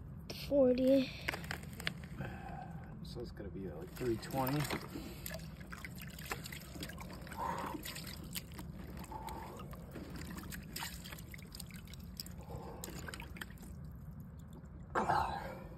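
Water splashes gently in a tub.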